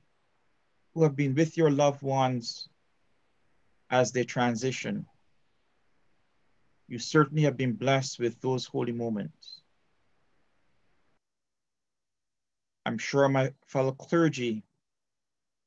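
A man speaks calmly into a microphone over an online call, pausing between phrases.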